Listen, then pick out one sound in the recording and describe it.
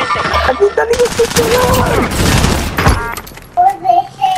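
Gunshots bang in short bursts.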